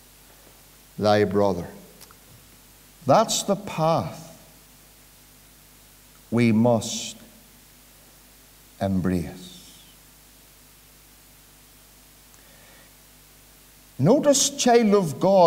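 A middle-aged man speaks emphatically through a microphone in short bursts with pauses, in a room with some echo.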